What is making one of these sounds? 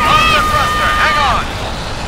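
A loud explosion booms with fire.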